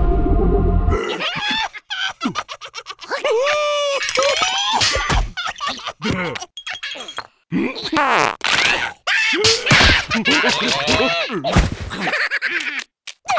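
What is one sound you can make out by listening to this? A cartoon bug chatters in a squeaky, animated gibberish voice.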